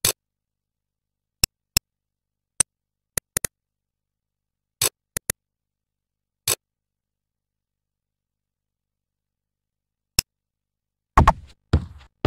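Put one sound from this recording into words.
Short interface clicks sound as a game menu is navigated.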